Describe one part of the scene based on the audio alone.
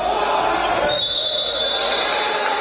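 A referee's whistle blows once, sharp and short.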